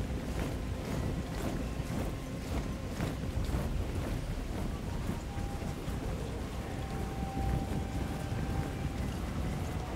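Many footsteps of a marching army rumble steadily over grass.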